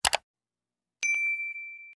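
A small bell chimes once and rings out.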